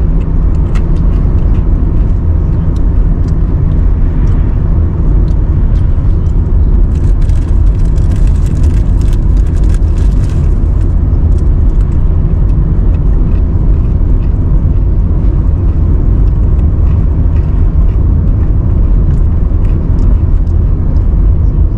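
Tyres roll over the road with a low rumble.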